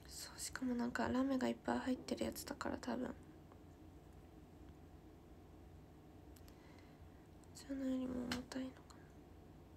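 A young woman speaks softly and casually close to a microphone.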